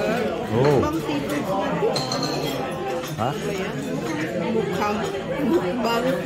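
A knife and fork scrape on a plate.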